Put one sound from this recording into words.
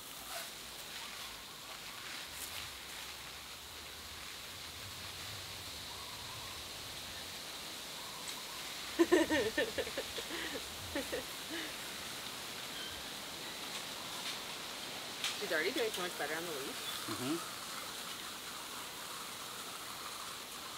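Water sprays softly from a garden hose.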